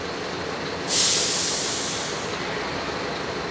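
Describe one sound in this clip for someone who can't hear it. Air brakes release with a loud hiss.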